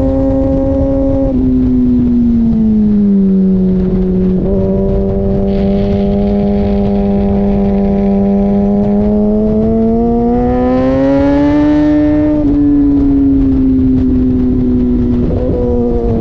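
A motorcycle engine roars loudly up close, its pitch falling and rising through gear changes.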